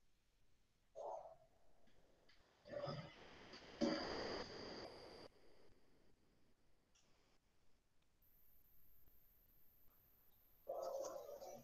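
A young woman speaks quietly over an online call.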